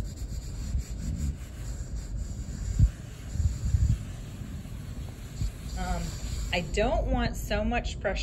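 Hands rub and press on a sheet of paper with a soft rustling.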